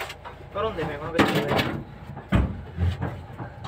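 A cardboard box scrapes and thumps as it is shifted.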